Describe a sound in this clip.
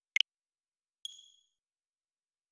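A short, high electronic jingle plays and fades.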